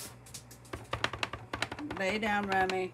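A stamp taps against an ink pad.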